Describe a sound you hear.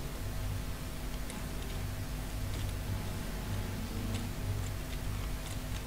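A pickup truck's engine hums as it drives slowly.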